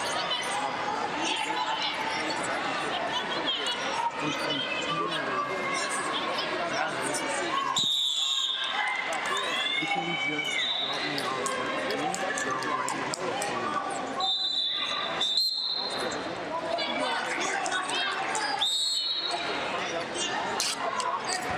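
Spectators and coaches talk and call out in a large echoing hall.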